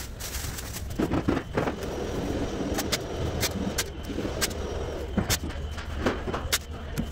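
Masking tape is pulled and torn.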